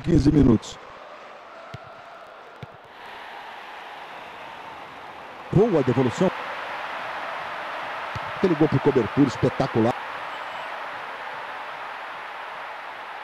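A stadium crowd cheers steadily and swells into a roar.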